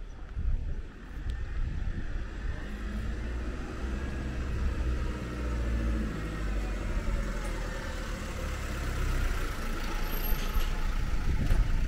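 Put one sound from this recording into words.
A van drives past close by, its engine rumbling louder as it nears.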